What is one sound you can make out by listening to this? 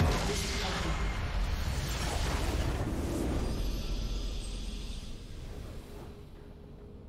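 A loud game explosion booms and rumbles, then slowly fades.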